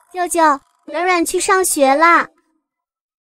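A young girl speaks in a high, bright voice close by.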